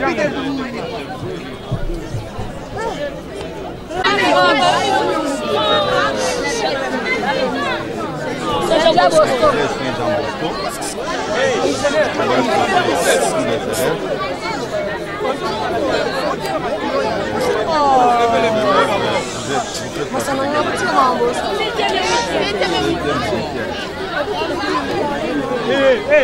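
A crowd of men talk and murmur all around, close by.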